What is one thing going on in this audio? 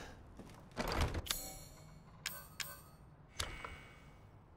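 A menu makes short clicks and chimes.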